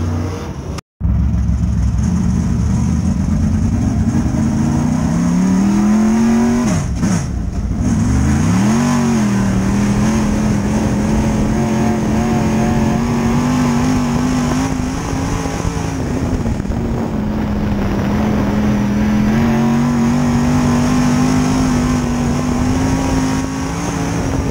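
Tyres rumble over a dirt track.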